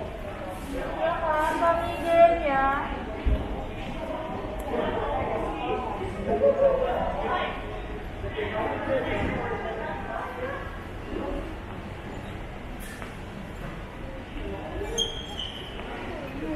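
Men and women talk nearby in a large echoing hall.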